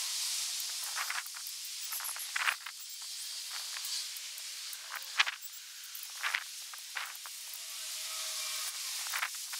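A small bird chirps in short bursts.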